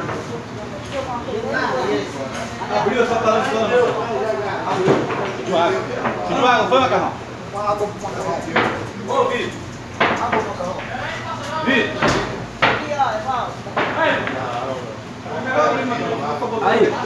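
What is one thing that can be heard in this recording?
Several young men talk and call out with animation nearby.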